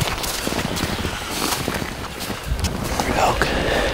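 Boots crunch through snow.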